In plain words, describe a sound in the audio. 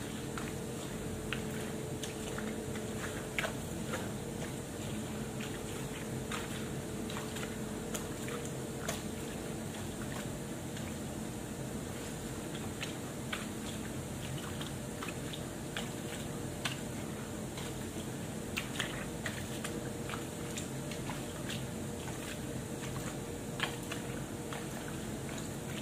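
Small things knock and clink now and then, close by.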